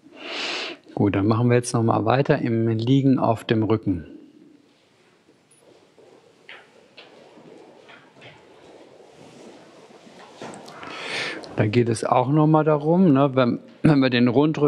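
A man chants in a deep, steady voice through a microphone.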